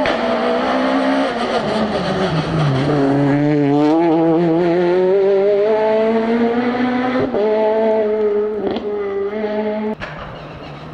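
A rally car engine roars at high revs, rising and dropping with gear changes.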